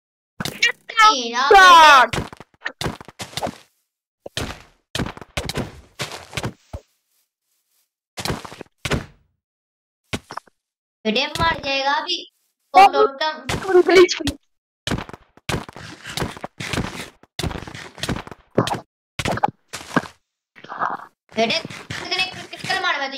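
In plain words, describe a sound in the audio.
A boy talks excitedly into a close microphone.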